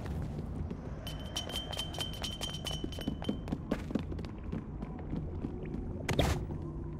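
Footsteps patter on the ground.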